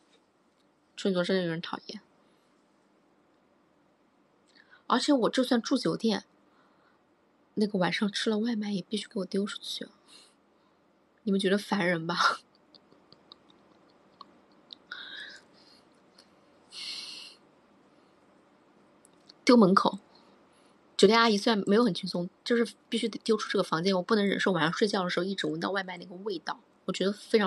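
A young woman talks close to a microphone in short bursts, with pauses.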